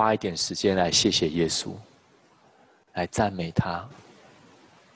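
A middle-aged man speaks calmly through a microphone in an echoing room.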